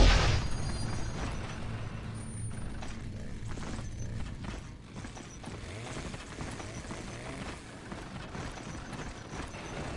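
Heavy tank engines rumble low and steadily.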